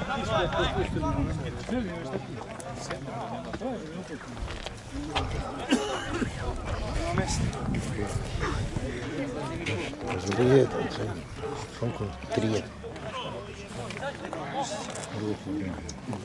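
Men shout and call to each other from across an open outdoor field.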